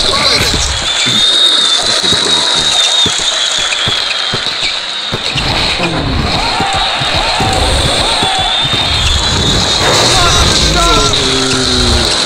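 A basketball bounces repeatedly on a hard court.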